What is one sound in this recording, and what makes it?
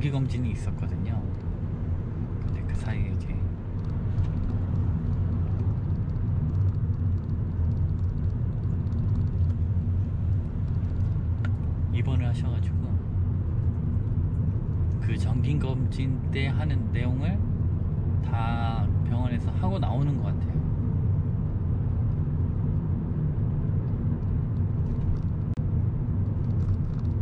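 A car engine hums steadily, with road noise heard from inside the car.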